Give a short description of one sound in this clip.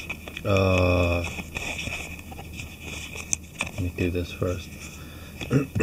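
A cardboard lid slides off a box.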